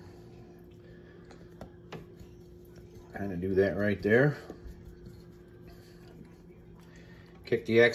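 Fingers press fish into dry crumbs with a soft rustle.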